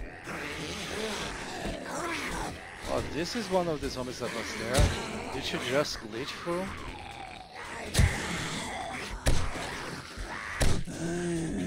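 A creature snarls and growls close by.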